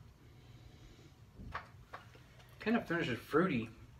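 A man sips from a glass.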